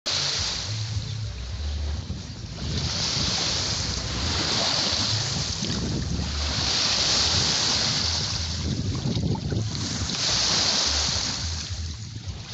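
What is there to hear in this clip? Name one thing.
Wind blows hard and gusts outdoors.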